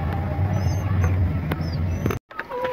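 A chick cheeps softly.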